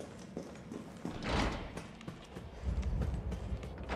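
A metal door swings open with a clank.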